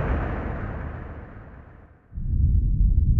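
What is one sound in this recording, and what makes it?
An explosion booms and fades away.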